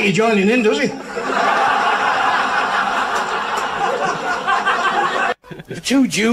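A large crowd laughs loudly in a room.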